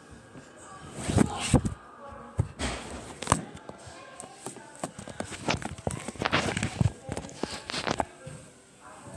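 Bodies thud and scuffle on a carpeted floor.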